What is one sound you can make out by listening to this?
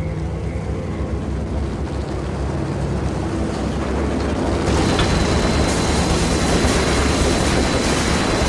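A lift hums steadily as it rises.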